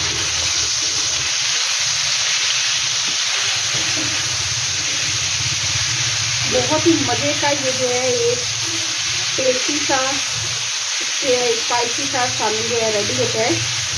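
A spatula stirs and scrapes food in a pan.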